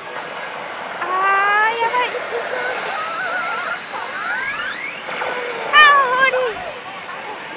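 A young woman exclaims excitedly nearby.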